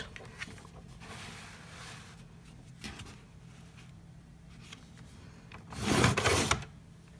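Paper slides and rustles across a flat surface.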